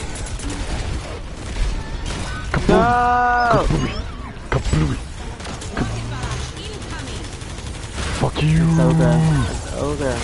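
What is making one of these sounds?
Heavy gunfire rattles in quick bursts.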